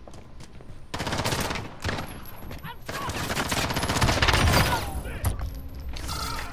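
Automatic gunfire rattles in loud rapid bursts.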